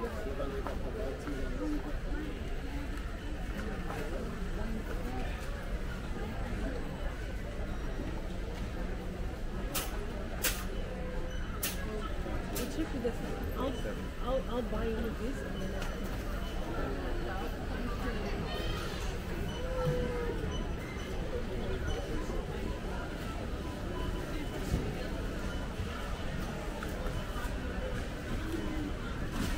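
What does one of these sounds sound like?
Shopping trolleys rattle and clatter over a hard floor.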